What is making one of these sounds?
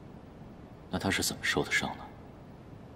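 A young man speaks calmly, asking a question.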